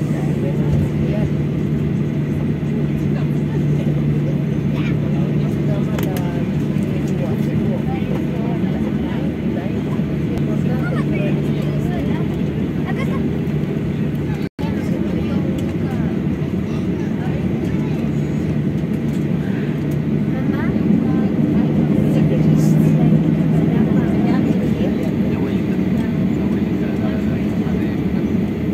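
Jet engines hum steadily, heard from inside an aircraft cabin.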